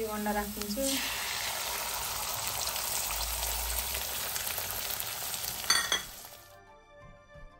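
Beaten egg sizzles as it pours into hot oil.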